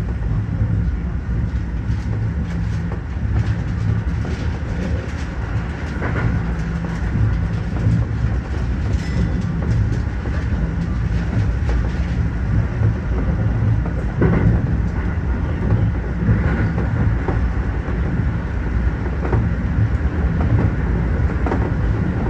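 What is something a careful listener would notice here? Train wheels click and clatter over rail joints.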